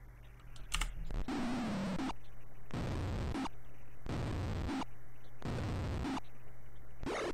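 A retro computer game plays bursts of hissing fire sound effects.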